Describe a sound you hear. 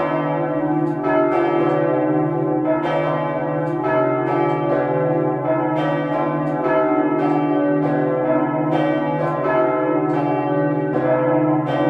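Large church bells swing and toll in an overlapping peal, each stroke ringing on.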